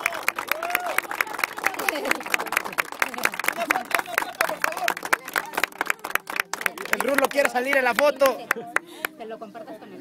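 A crowd of young women cheers and shouts.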